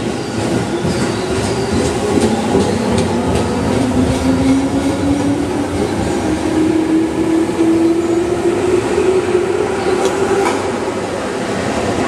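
A train's electric motors whine, rising in pitch as it pulls away.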